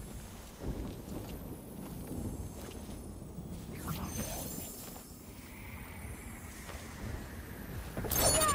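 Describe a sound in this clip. Magical energy crackles and hums in bursts.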